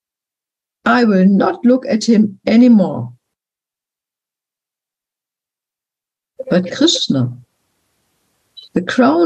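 An elderly woman speaks calmly in short phrases over an online call.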